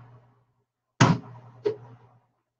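A plastic bowl knocks and rattles as it is taken down.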